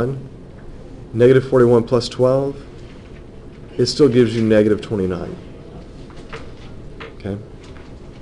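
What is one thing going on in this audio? A felt marker squeaks and scratches across paper.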